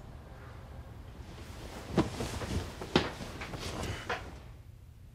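Bedsheets rustle as a young man turns over in bed.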